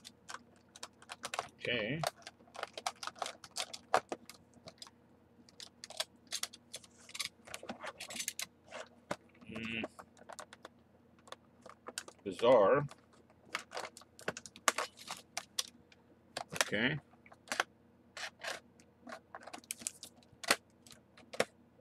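Plastic blister packaging crinkles and crackles in someone's hands.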